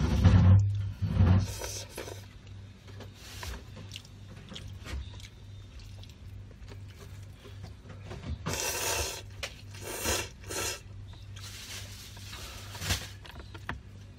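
A young woman slurps noodles loudly, close by.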